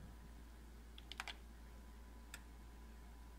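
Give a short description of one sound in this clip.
A machine's button clicks a few times.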